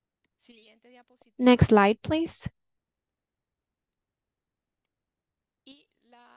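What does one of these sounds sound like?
A young woman speaks calmly through a microphone on an online call.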